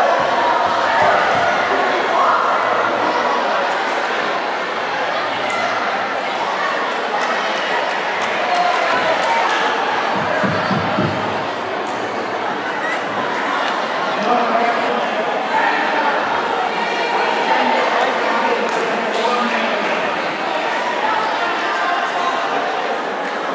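A crowd of boys and young people chatter and shout in a large echoing hall.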